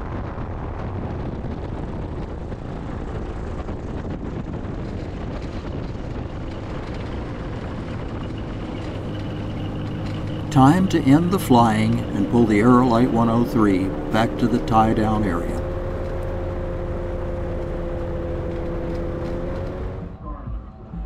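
An aircraft engine drones steadily.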